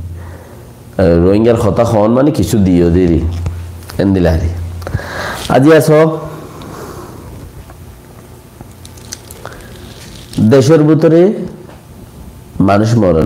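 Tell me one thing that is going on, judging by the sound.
A man speaks with feeling into a close microphone, in a melodic, chanting voice, with pauses between phrases.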